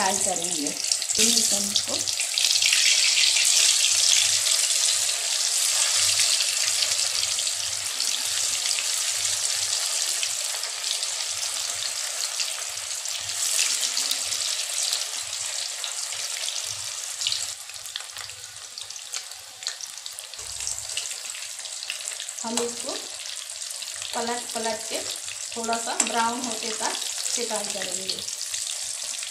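Oil sizzles and crackles steadily as food fries.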